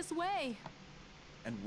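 A woman speaks briefly and firmly.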